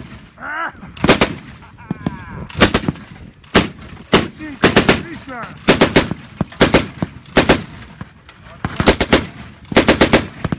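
A heavy machine gun fires loud short bursts outdoors.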